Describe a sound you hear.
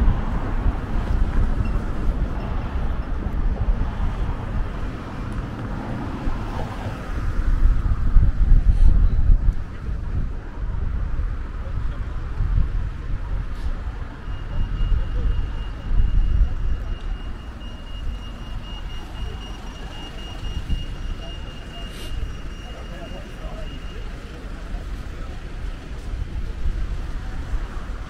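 Wind buffets the microphone outdoors, loud and gusty.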